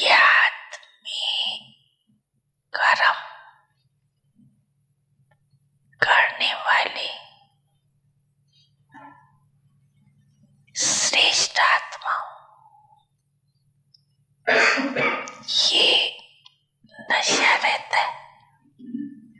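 An elderly woman speaks through a microphone in short bursts with pauses.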